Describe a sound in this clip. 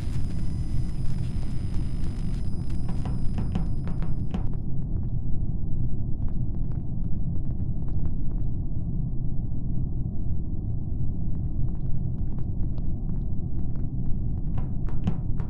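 Light footsteps patter on a metal floor.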